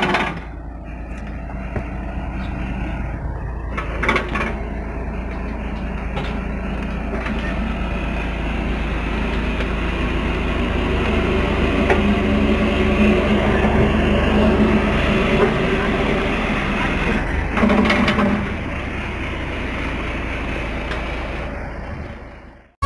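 A winch engine runs with a steady, loud hum.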